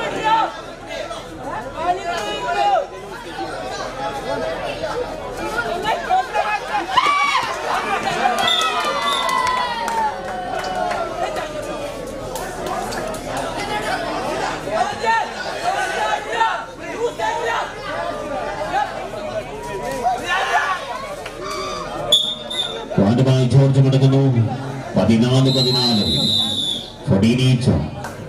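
A large crowd cheers and shouts in a noisy hall.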